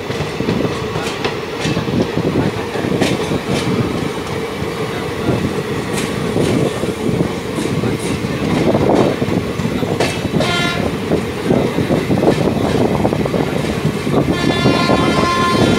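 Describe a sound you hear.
A passenger train rattles past close by, its wheels clattering over rail joints.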